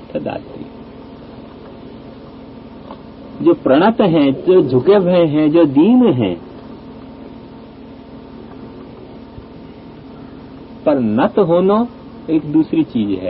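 An elderly man speaks slowly and expressively into a microphone, with pauses.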